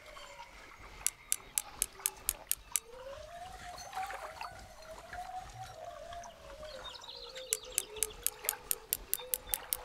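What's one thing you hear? A fishing reel clicks rapidly as its line is wound in.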